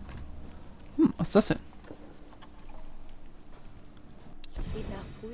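A young woman grunts with effort.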